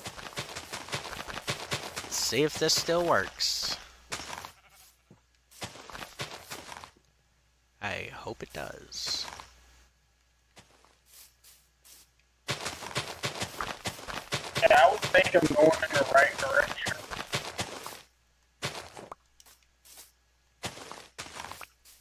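Soft grassy pops sound as saplings are planted one after another.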